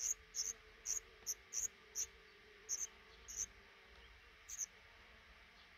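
Baby birds chirp in short, high, thin peeps from close by.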